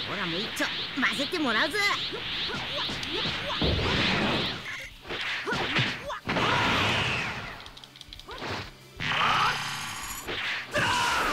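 An energy blast whooshes and crackles.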